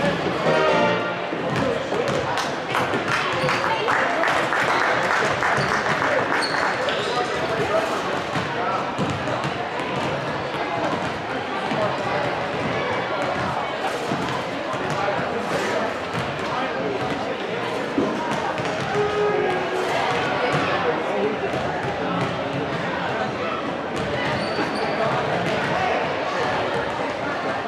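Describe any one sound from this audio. A school band plays brass and drums in a large echoing gym.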